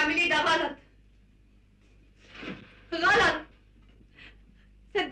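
A young woman speaks anxiously, close by.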